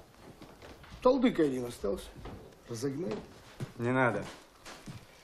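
A middle-aged man speaks in a low voice.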